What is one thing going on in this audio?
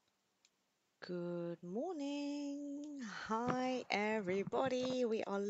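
A young woman speaks animatedly into a headset microphone, heard over an online call.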